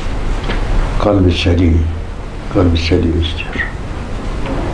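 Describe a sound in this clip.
An elderly man speaks slowly and calmly into a microphone.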